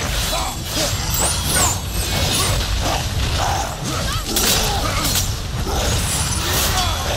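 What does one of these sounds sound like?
Heavy blows thud and crash in a fight.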